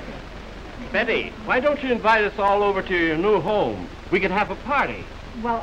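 An elderly man speaks warmly up close.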